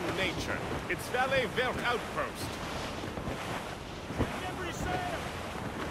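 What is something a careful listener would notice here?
Water washes against a sailing ship's hull.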